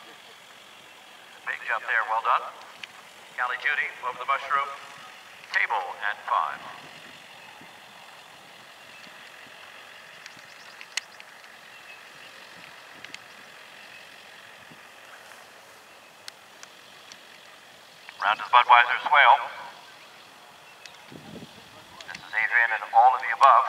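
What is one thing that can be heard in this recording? A horse gallops on grass at a distance, its hooves thudding.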